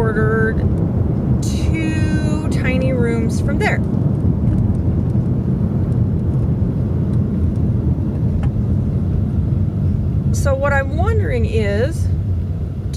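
A car's engine and tyres hum steadily from inside the car.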